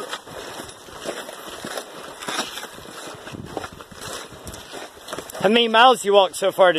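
Footsteps crunch on a rocky gravel trail.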